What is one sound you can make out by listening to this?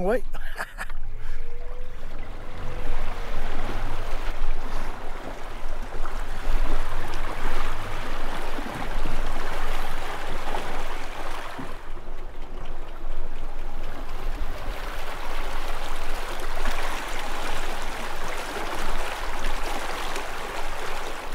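A small outboard motor hums steadily.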